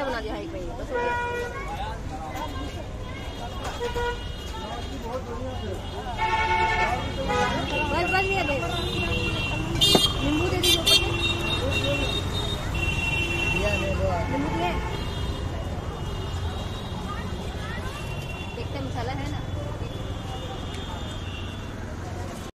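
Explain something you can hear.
A busy street murmurs in the background outdoors.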